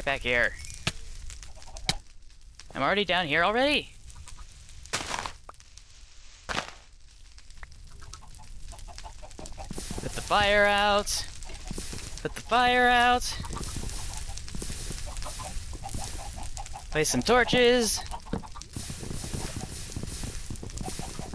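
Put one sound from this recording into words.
Fire crackles and pops.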